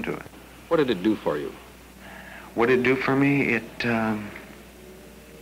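A young man speaks hesitantly, close by.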